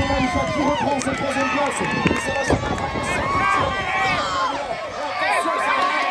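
A crowd of spectators cheers and shouts nearby outdoors.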